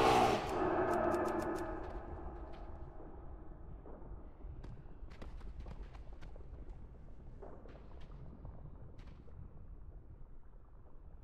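Lava rumbles and bubbles low and steady.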